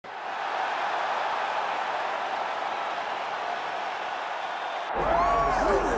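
A large crowd roars and cheers in a vast echoing arena.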